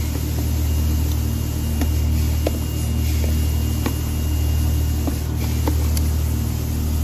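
Light plastic knocks and taps sound as a tub is handled.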